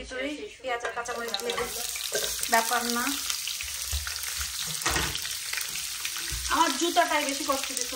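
Onions sizzle steadily in hot oil.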